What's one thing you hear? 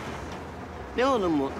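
A middle-aged man speaks briefly in a low voice.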